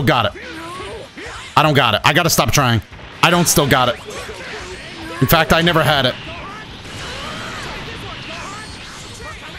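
Punches and kicks land with sharp, heavy smacks.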